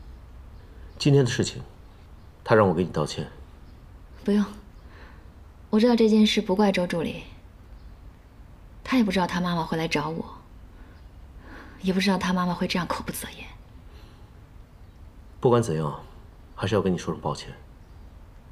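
A young woman speaks calmly and quietly, close by.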